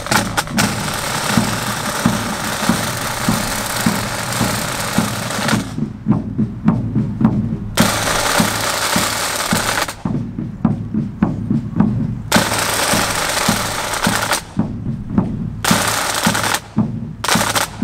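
Snare drums play a fast, crisp rhythm together outdoors.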